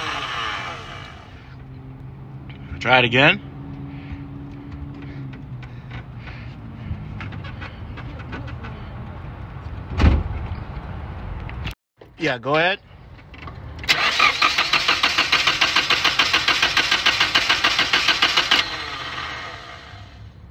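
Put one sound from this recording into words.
A four-cylinder car engine idles.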